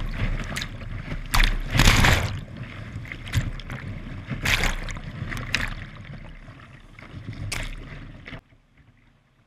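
Water splashes loudly over the front of a kayak.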